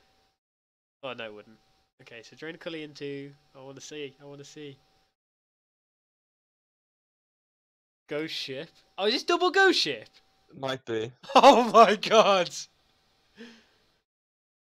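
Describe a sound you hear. A young man talks with animation into a headset microphone, in bursts with pauses.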